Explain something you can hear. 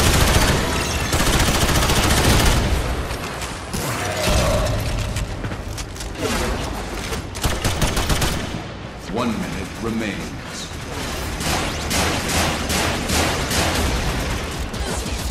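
Guns fire in rapid bursts with sharp energy blasts.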